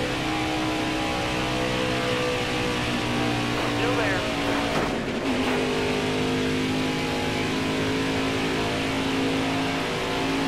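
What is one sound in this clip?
A stock car's V8 engine roars at full throttle.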